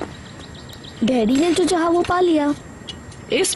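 A boy speaks softly and close.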